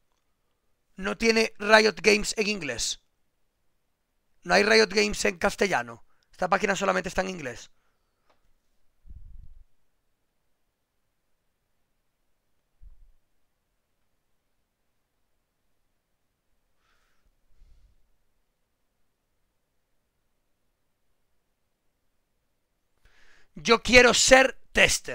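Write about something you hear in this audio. A man speaks calmly into a close microphone, in short bursts.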